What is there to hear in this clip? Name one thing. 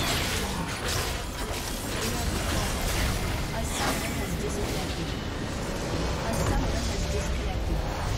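Game spell effects crackle and whoosh during a fast battle.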